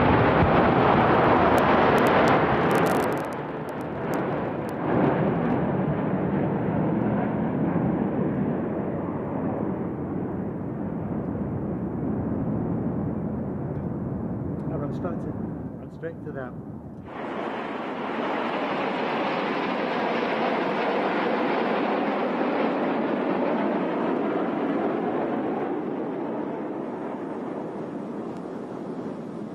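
Jet planes roar steadily overhead.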